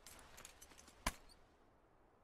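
Two fists bump together with a thud.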